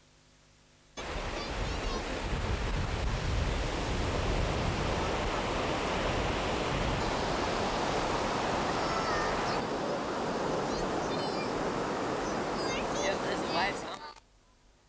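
Waves wash onto a beach nearby.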